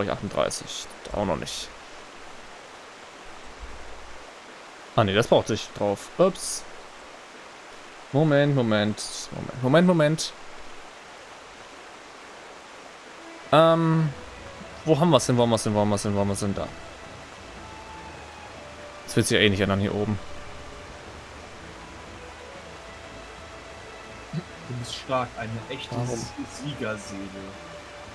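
A young man talks calmly and casually, close to a microphone.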